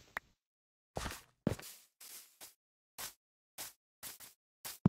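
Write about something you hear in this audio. Footsteps crunch on grass at a steady walking pace.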